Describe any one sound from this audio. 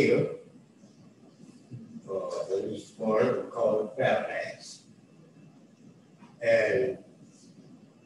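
An elderly man speaks calmly and haltingly into a microphone.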